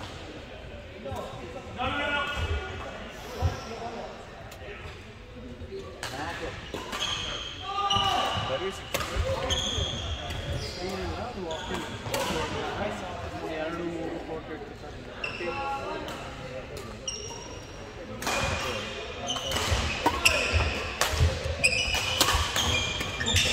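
Shuttlecocks are struck by rackets with sharp pops in a large echoing hall.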